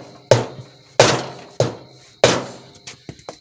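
A hammer strikes metal with sharp, ringing blows.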